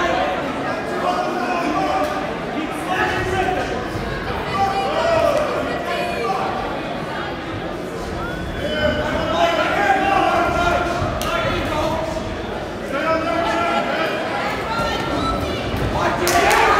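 A crowd of spectators shouts and cheers in a large echoing hall.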